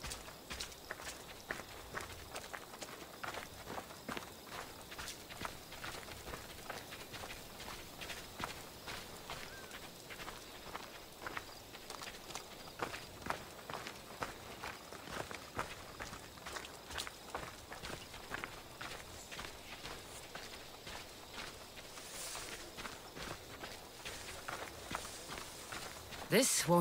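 Footsteps crunch steadily on a dirt and gravel path.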